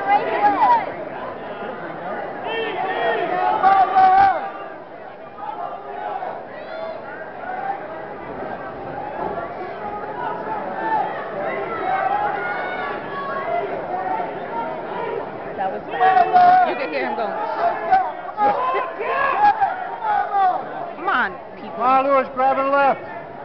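Nearby men shout loudly in the crowd.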